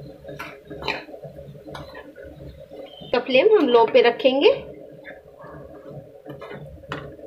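A spatula scrapes and stirs through food in a frying pan.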